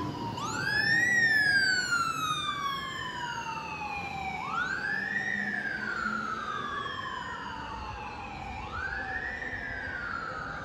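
A siren wails close by, rising and falling in repeated sweeps.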